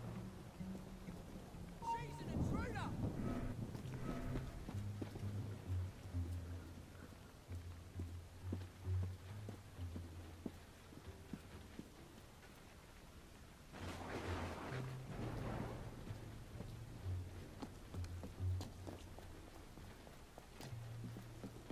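Footsteps patter quickly across a roof.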